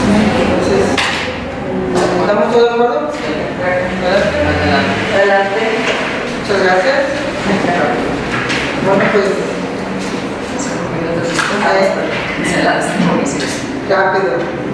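A woman speaks calmly in a room with some echo.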